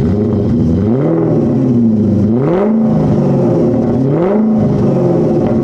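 An inline-six petrol car engine idles and is revved in short bursts by hand at the throttle.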